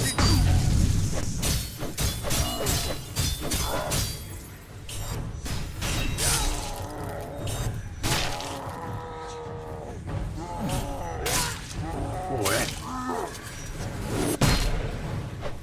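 Swords clash and strike in quick, sharp blows.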